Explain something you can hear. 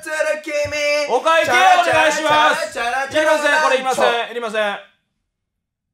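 A young man sings loudly with animation.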